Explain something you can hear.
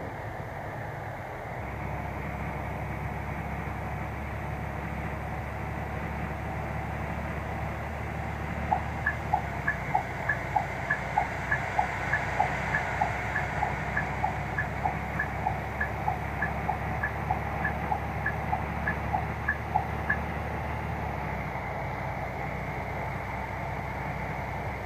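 A bus engine hums steadily at speed.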